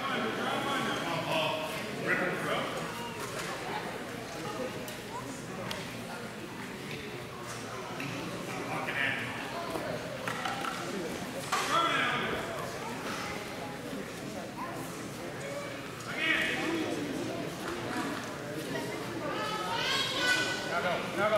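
Voices of a crowd murmur and call out in a large echoing hall.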